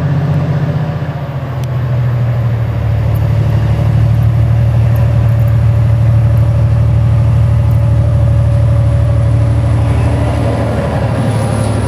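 A train engine rumbles loudly as it approaches.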